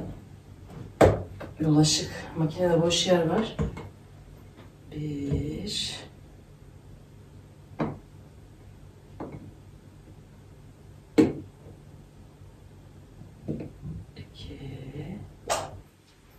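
Kitchen items clink and knock on a counter.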